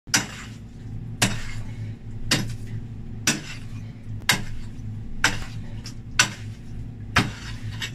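A pickaxe strikes hard earth again and again in a steady rhythm.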